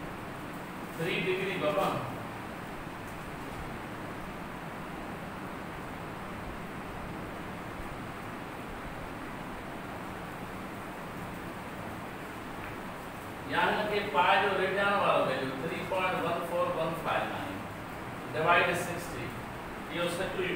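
A man speaks in a calm, lecturing voice.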